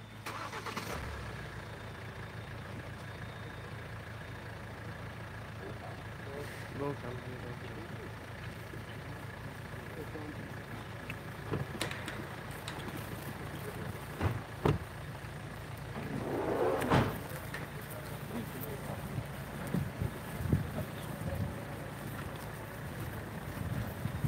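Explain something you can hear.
A van engine idles and rumbles low.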